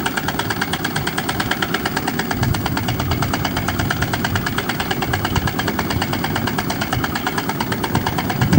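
A freight train rumbles and clatters steadily along the tracks.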